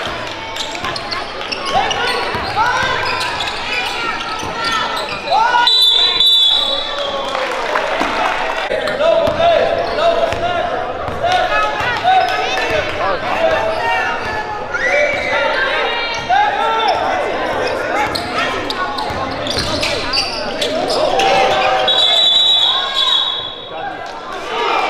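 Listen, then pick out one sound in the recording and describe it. A crowd chatters and calls out in an echoing gym.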